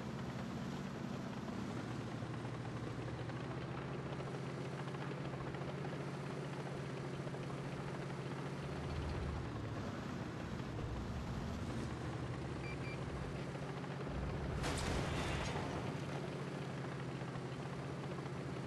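A tank engine rumbles low as the tank drives.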